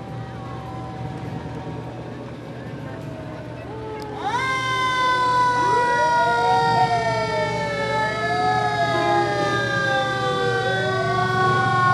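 Motorcycle engines rumble past.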